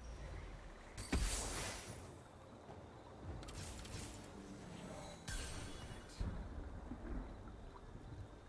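Fantasy game fighters clash with sharp magical blasts and hits.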